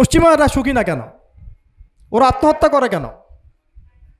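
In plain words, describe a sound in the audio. A man speaks calmly into a microphone, heard close through a loudspeaker system.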